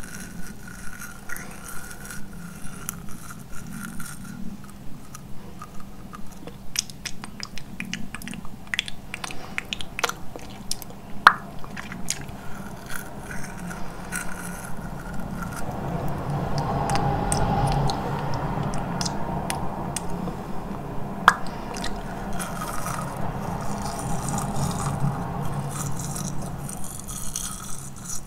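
A young woman makes soft mouth sounds close to a microphone.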